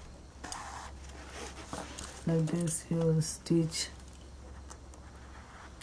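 Fabric rustles softly as it is handled.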